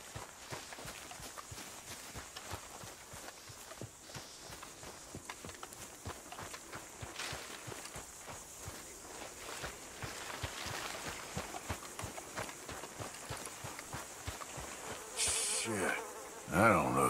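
Footsteps crunch steadily over forest ground.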